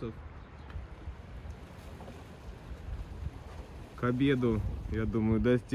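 Wind gusts outdoors over open water.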